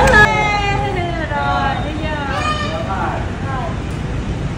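A young child calls out excitedly nearby.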